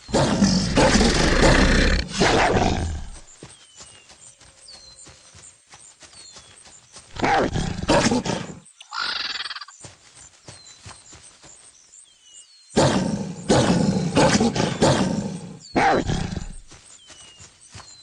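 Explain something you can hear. A wolf snarls and growls as it attacks.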